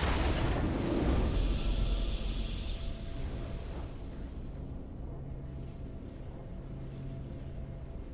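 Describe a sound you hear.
A triumphant fanfare plays softly.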